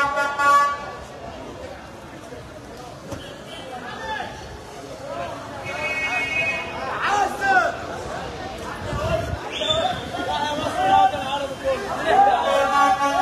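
A crowd of men cheers and shouts outdoors.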